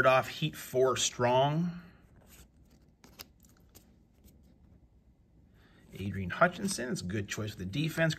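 Trading cards slide against each other as they are shuffled.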